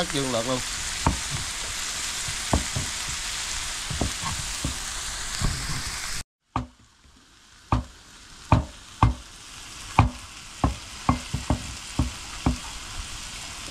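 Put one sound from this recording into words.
A knife chops sharply on a wooden board, again and again.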